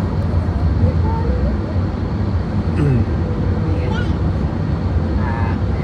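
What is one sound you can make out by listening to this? A car drives along a road, heard from inside as a low rumble of tyres on asphalt.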